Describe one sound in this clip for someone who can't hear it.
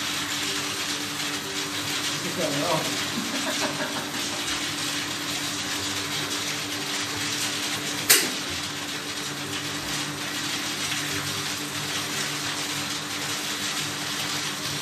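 Bubbling water churns steadily in a hot tub.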